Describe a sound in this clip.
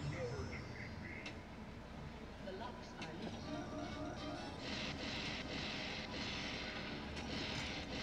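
Pinball game effects chime and jingle.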